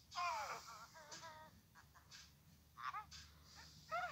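A cartoon bird character speaks in a high, squeaky voice.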